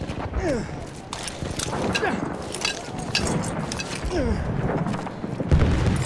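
Explosions boom and rumble all around.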